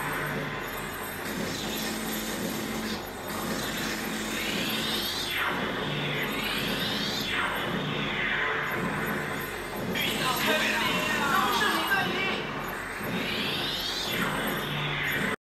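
An arcade game plays upbeat electronic music through its speakers.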